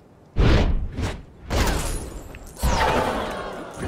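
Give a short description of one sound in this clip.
Energy blasts whoosh and crackle loudly.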